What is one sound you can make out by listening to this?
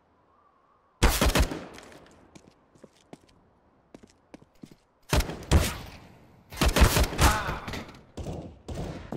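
Rifle shots crack out in short bursts.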